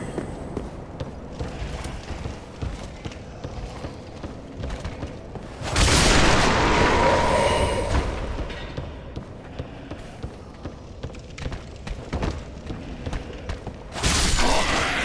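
Armoured footsteps thud on wooden boards.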